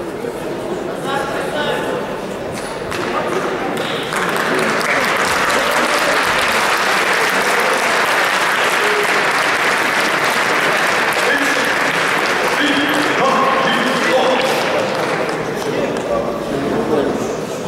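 A crowd cheers and chatters loudly in a large echoing hall.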